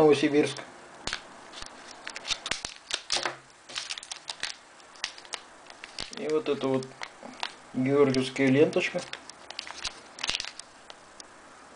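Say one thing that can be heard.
A plastic wrapper crinkles and rustles in a hand.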